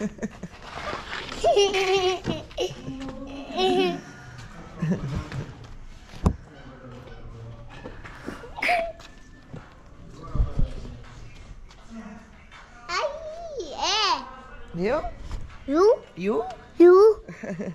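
A young girl speaks and giggles close by.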